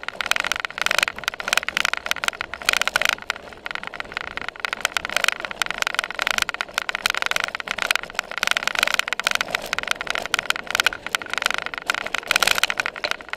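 Tyres rumble over rough turf.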